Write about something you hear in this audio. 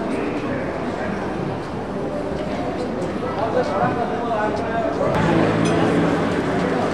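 A crowd of people chatter nearby outdoors on a busy street.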